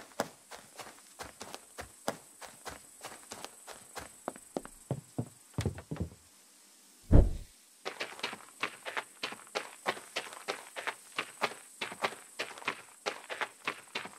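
Footsteps crunch quickly over grass and gravel.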